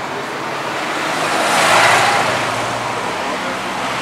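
A vehicle rushes past on a nearby road.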